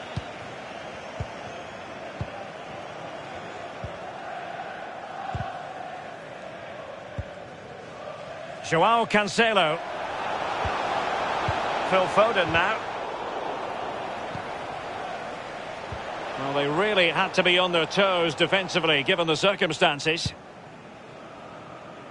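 A stadium crowd murmurs and roars steadily in the distance.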